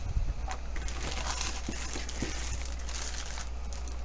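A cardboard box rustles and bumps as it is opened.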